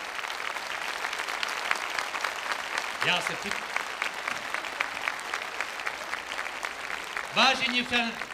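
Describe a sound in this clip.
A large crowd applauds in an echoing hall.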